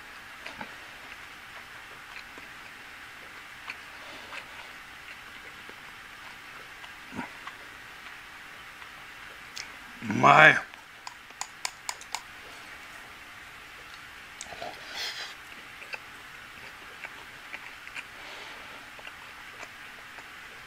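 Chopsticks click and tap against a ceramic bowl.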